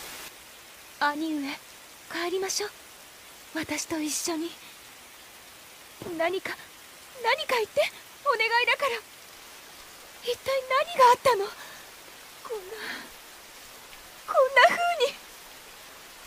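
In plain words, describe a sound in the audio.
A young woman pleads with emotion, close by.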